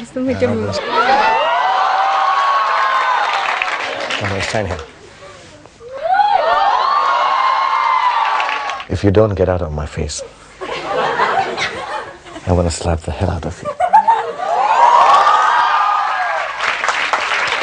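A crowd of young women screams and cheers loudly.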